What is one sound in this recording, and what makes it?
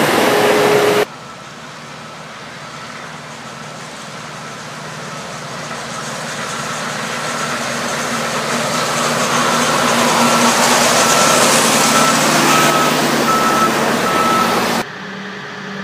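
A second rail work vehicle approaches on the tracks, growing louder as it rumbles past.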